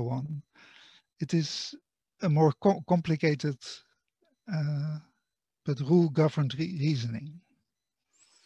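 An elderly man speaks calmly through a computer microphone.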